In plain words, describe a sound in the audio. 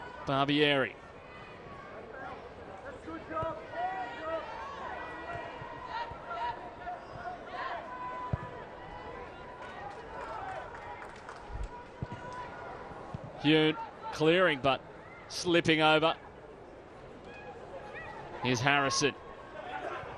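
A referee's whistle blows in short, shrill blasts.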